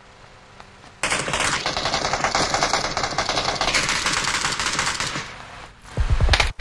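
A buggy engine roars nearby.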